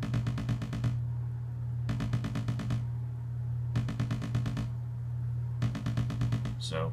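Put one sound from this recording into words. A synthesizer plays a low steady drone.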